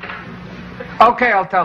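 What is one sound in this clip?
A man speaks into a telephone.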